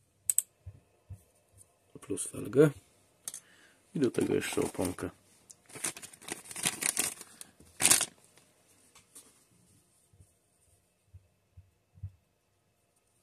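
Small plastic parts click and knock together as they are handled.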